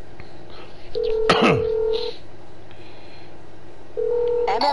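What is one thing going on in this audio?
A phone ringing tone sounds in short beeps.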